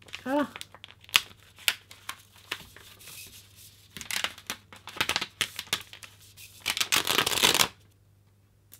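Paper rustles and crinkles up close as it is peeled away.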